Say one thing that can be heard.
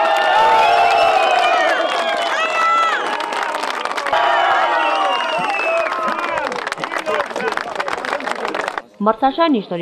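A crowd cheers and claps outdoors.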